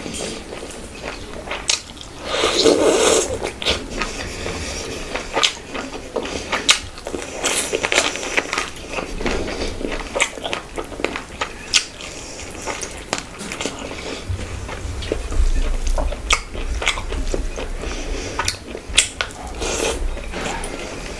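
Fingers squish and mix soft rice and gravy close to a microphone.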